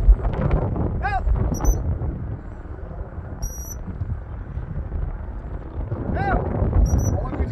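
A bird calls from overhead.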